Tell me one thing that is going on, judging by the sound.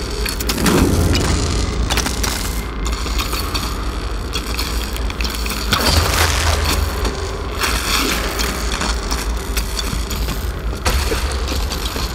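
Rushing water churns steadily.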